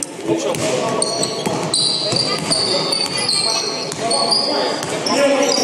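Sneakers squeak sharply on a hard floor in an echoing hall.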